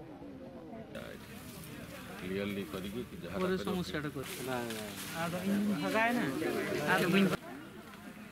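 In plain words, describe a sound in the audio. A crowd of people murmurs outdoors.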